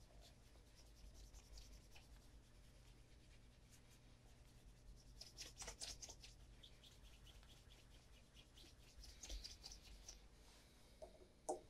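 A cloth rubs briskly against the sole of a leather shoe.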